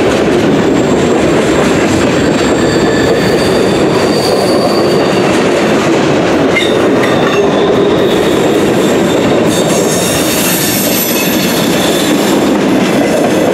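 Steel wheels squeal on the rails.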